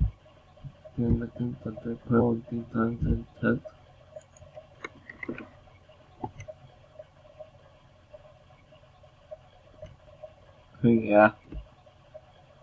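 A young man speaks briefly and casually, close to a computer microphone.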